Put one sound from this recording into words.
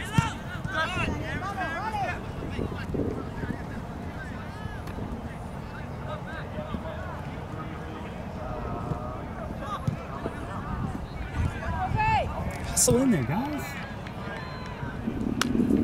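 Young men shout to one another in the distance across an open field.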